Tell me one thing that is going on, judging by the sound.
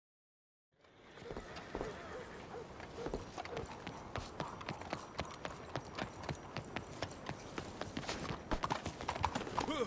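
Footsteps hurry across a stone path.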